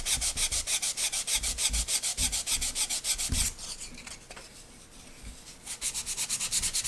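Sandpaper rubs rapidly back and forth on wood in quick, even strokes.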